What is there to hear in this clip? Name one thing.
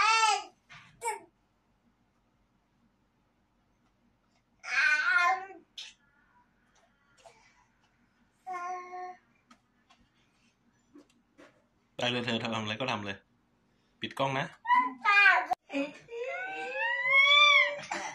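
A baby babbles and squeals close by.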